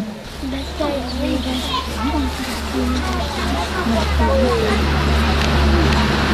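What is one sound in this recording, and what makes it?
A group of young children sing together nearby, outdoors.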